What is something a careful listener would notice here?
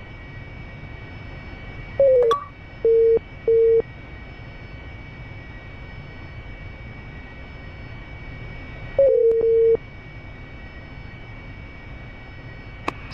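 A jet engine hums steadily inside a cockpit.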